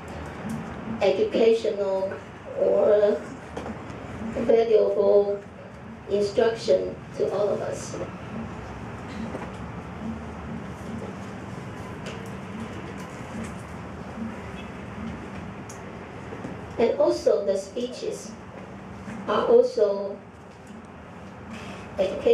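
A woman speaks into a microphone through a loudspeaker, reading out in bursts with pauses.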